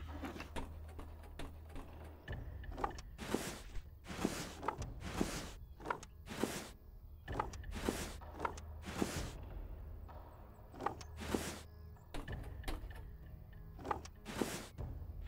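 Wooden cabinet doors swing open.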